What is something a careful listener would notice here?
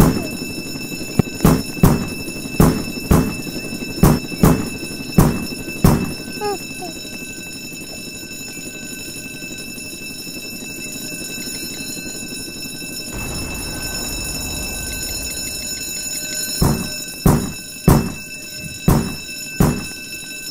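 A young boy talks close to a headset microphone.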